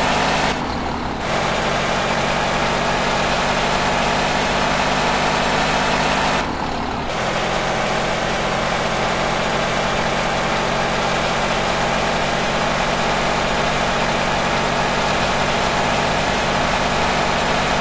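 A truck engine drones steadily as the truck picks up speed.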